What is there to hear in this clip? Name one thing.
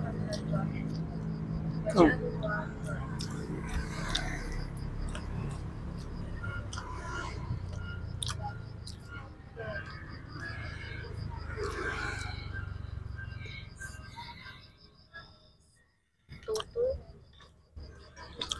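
A middle-aged man chews and smacks his lips close to a microphone.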